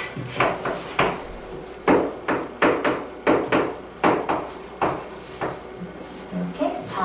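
A pen taps sharply on a board.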